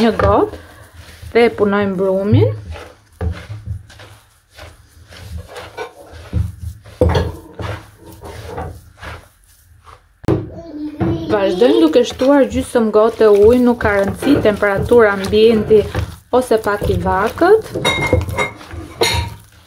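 Hands squeeze and knead crumbly dough in a bowl with soft, dry rustling.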